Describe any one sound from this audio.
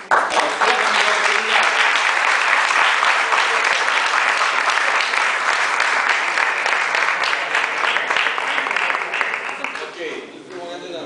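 An audience claps loudly in a room.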